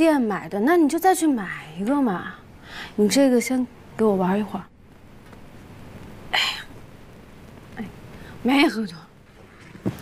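A young woman speaks with annoyance, close by.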